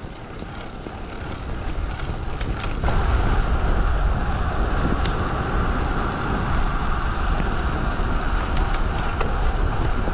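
Wind rushes loudly past, growing stronger.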